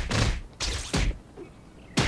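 An explosion bursts with a loud bang.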